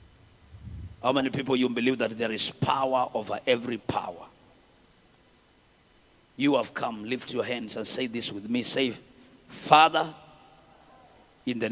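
A man prays loudly and fervently through a loudspeaker in an echoing hall.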